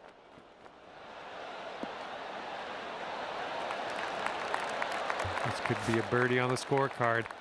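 A crowd cheers and applauds, growing louder.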